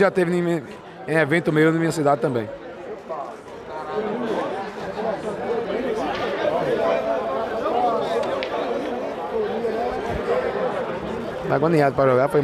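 Pool balls click against each other.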